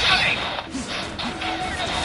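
Game attack effects whoosh and crackle with energy.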